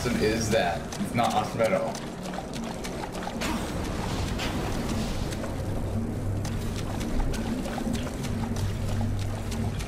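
Water splashes.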